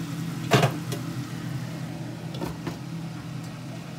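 A metal lid clanks down onto a pan.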